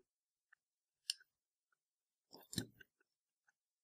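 A plastic plug clicks into a socket.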